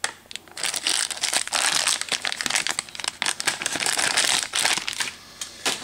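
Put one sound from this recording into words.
A plastic wrapper crinkles and rustles in a hand.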